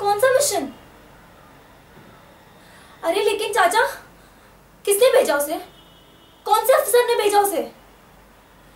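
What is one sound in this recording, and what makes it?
A young woman speaks close by, upset and agitated, in short bursts.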